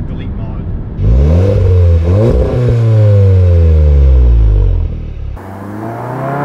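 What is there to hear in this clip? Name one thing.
A car engine revs loudly and pops through its exhaust.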